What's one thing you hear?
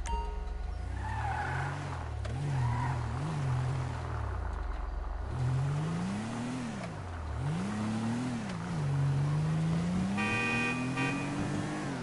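A car engine revs up and down as the car drives off.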